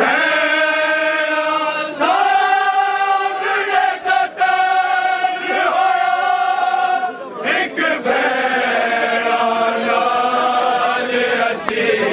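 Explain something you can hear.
A crowd of men chants loudly together in long, drawn-out lines.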